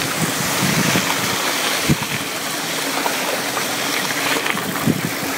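Bicycle tyres roll and crunch over a bumpy dirt track.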